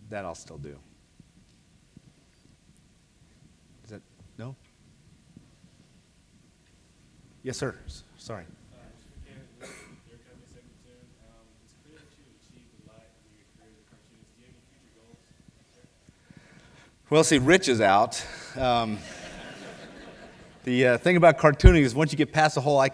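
A man speaks to an audience through a microphone, in a large echoing hall.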